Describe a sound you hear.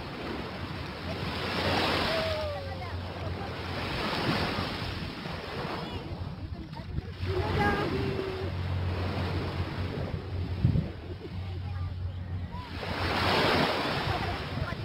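Small waves wash softly onto a sandy shore.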